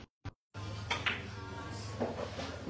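A cue strikes a pool ball, and the balls click together.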